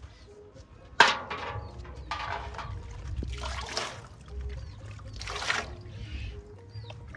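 Water splashes in a basin.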